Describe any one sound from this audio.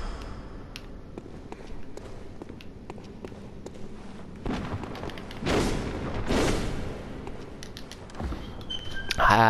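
Footsteps tap on wooden floorboards.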